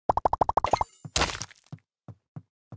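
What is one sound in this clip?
A brick wall smashes apart with a crash.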